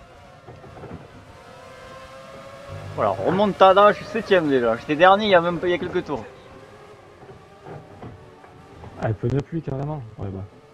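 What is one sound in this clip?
A racing car engine whines at high revs.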